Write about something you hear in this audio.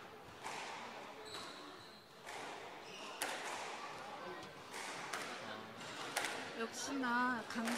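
A squash ball smacks sharply off the walls and rackets in an echoing court.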